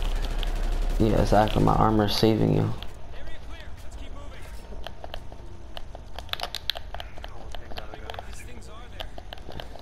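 Rapid gunfire crackles in short bursts.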